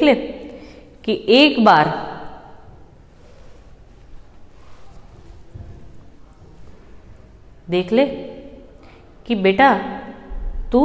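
A young woman speaks calmly and clearly into a nearby microphone, pausing between phrases.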